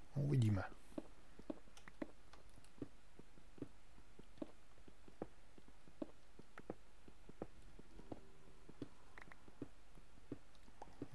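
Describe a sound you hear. A pickaxe knocks against stone in steady, regular taps.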